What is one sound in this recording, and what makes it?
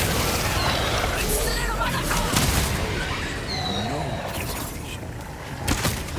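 Swords clash and slash in a fierce fight.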